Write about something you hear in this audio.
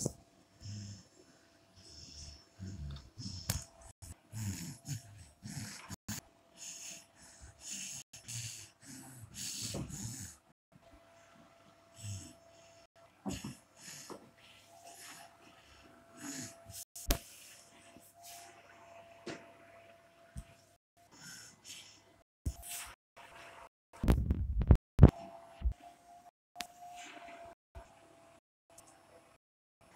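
A small toy motor whirs.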